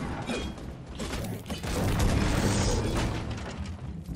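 A pickaxe strikes wooden crates with sharp knocks.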